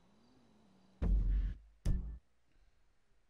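A game pause menu opens with a loud whoosh.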